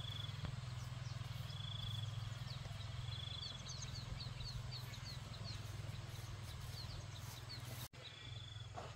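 Footsteps tread on dry grass and stubble.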